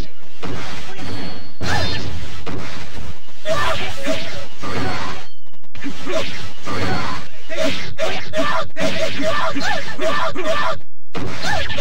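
Swords and spears clash and slash in quick, repeated blows.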